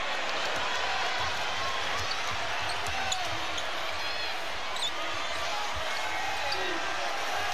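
A basketball bounces on a court.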